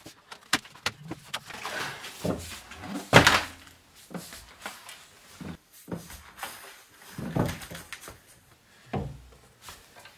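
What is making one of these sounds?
A glass tank knocks and scrapes against a tabletop.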